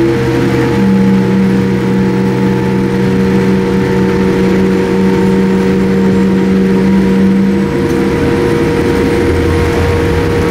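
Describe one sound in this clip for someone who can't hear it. Airliner wheels rumble over a runway.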